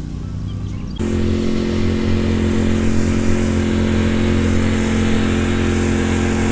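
A ride-on lawn mower engine drones steadily nearby.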